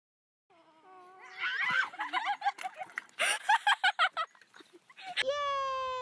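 Young women scream and laugh loudly close by.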